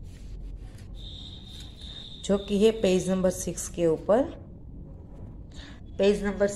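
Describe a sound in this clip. A sheet of paper rustles softly.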